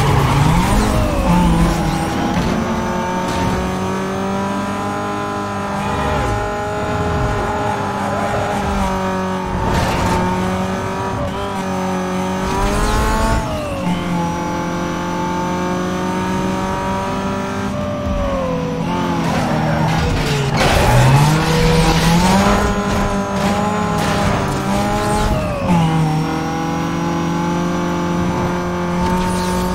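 A sports car engine roars at full throttle.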